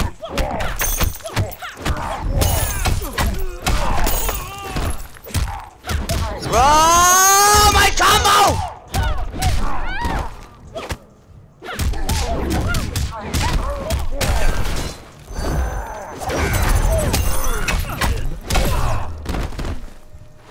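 Heavy punches and kicks thud and crack in quick bursts.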